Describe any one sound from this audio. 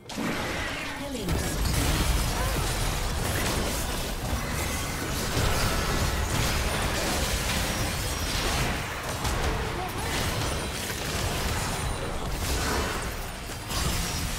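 Magic blasts, clashing weapons and explosions crackle and boom in a busy battle.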